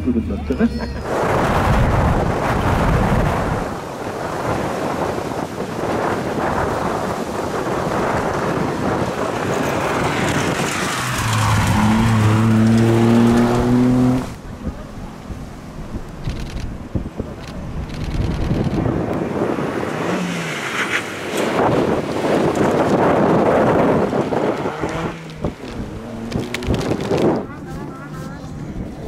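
A rally car engine roars loudly as the car speeds past.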